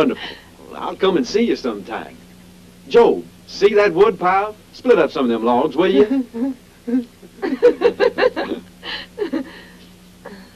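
A man speaks cheerfully nearby.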